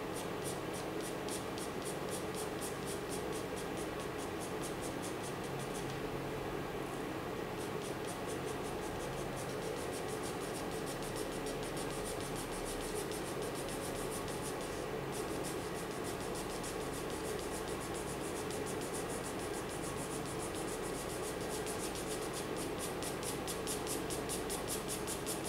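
A pencil scratches rapidly back and forth on paper.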